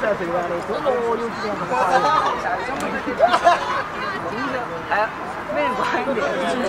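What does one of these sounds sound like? A crowd of young men and women chat outdoors nearby.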